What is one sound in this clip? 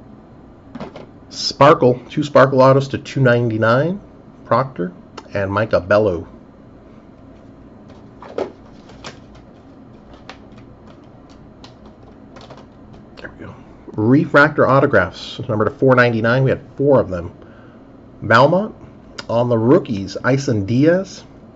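Plastic card holders click and rustle as they are handled.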